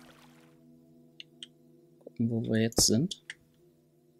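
A stone block is set down with a short knock.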